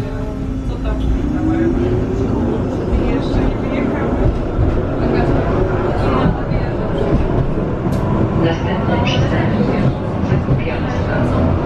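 A tram's electric motor whines, rising in pitch as the tram speeds up.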